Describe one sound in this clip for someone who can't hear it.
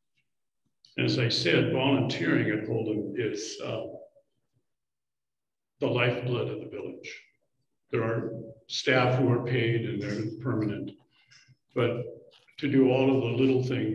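An elderly man speaks with animation into a microphone, heard through an online call.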